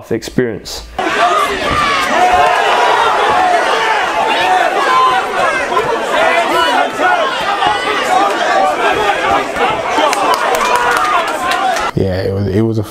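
A crowd cheers and shouts loudly in a large hall.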